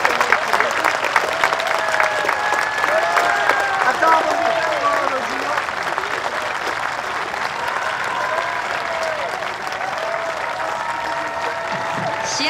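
A crowd of spectators murmurs outdoors.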